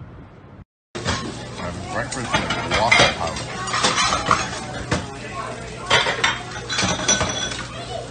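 Utensils clatter against pans and plates.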